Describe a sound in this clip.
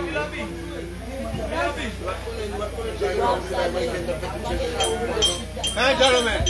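Several women and men sing together nearby.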